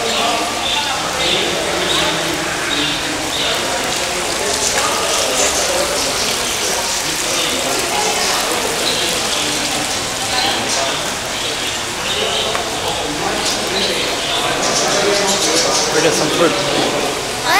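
Several people talk in a busy, echoing hall.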